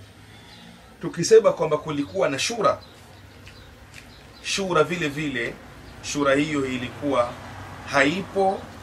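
A man speaks calmly close to a microphone, in short phrases with pauses.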